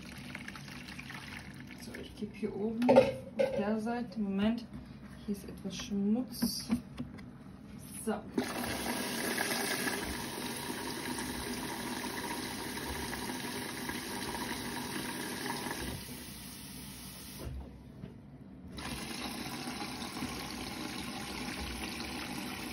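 Water sloshes as laundry tumbles in a front-loading washing machine drum.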